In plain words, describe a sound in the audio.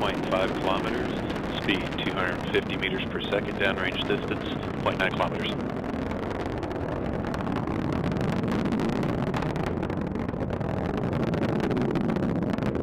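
A rocket engine roars with a deep, steady rumble.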